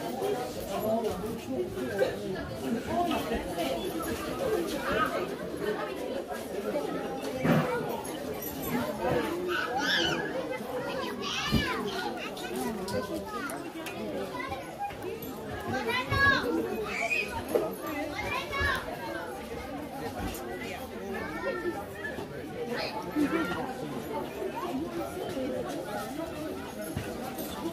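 A crowd of men and women chatters nearby outdoors.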